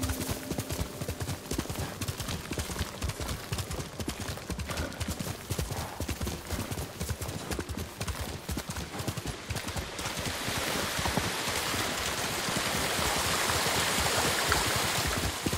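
Hooves pound quickly as a horse gallops.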